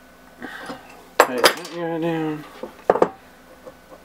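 A metal wrench clinks against metal.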